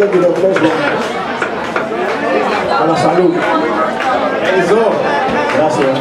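A live band plays music with drums and percussion.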